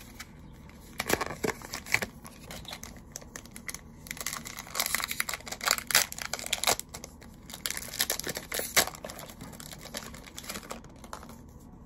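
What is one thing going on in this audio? Plastic wrappers crinkle and rustle as they are handled.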